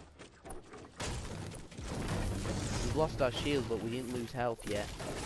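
A video game pickaxe chops against a wooden wall.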